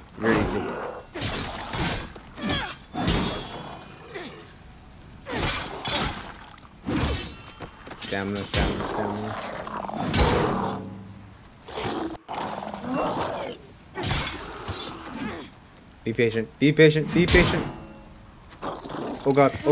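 Blades clash and strike in a close fight.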